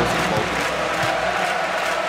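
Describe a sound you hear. A volleyball bounces on a hard court floor.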